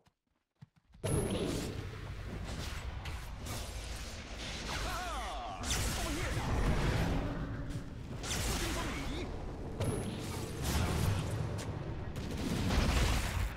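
Magic spells crackle and burst with booming blasts in a video game battle.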